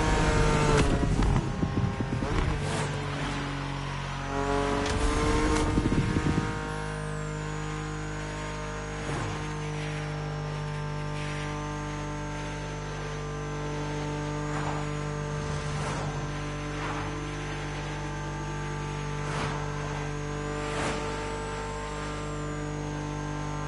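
A race car engine roars steadily at high speed.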